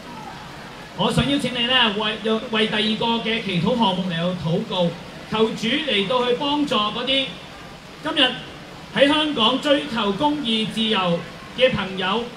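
A man sings into a microphone through a loudspeaker, outdoors.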